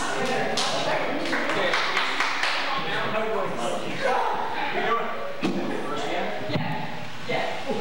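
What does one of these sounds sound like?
Several young women and men chat casually nearby in an echoing hall.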